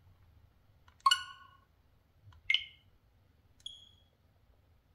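A handheld game console gives short electronic chimes as its menu is used.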